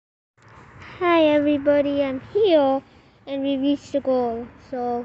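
A boy speaks with animation, close to a phone microphone.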